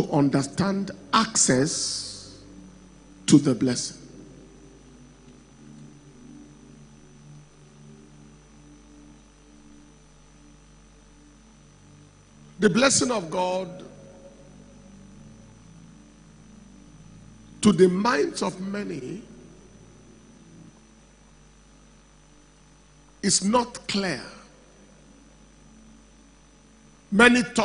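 A man preaches into a microphone in bursts, his voice echoing through a large hall.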